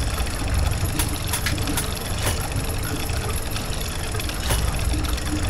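Metal gears click into place.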